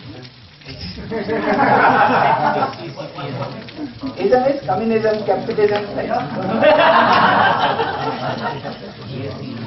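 A crowd of people laughs together in a room.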